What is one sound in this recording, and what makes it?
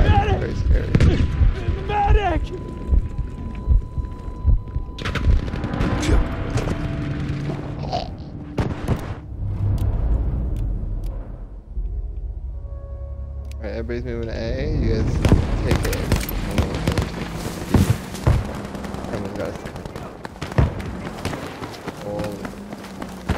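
Gunfire and explosions crack and boom across a battlefield.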